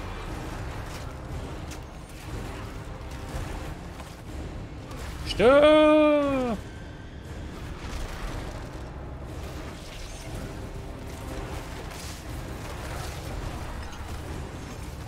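Game combat sounds of blows and spell effects clash steadily throughout.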